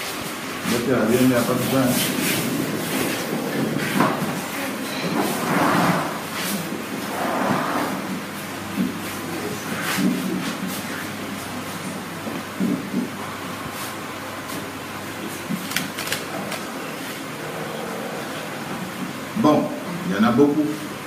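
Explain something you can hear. Several people talk at once close by.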